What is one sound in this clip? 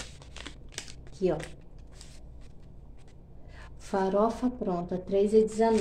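A paper receipt rustles in a woman's hands.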